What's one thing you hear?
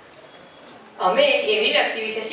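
A boy speaks loudly into a microphone through a loudspeaker.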